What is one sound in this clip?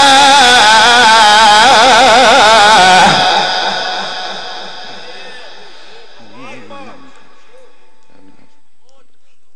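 A man chants loudly into a microphone, with a wavering melodic voice that echoes and fades.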